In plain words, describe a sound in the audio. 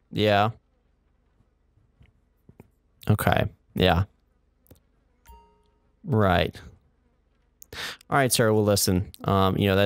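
A man speaks pleadingly, close by.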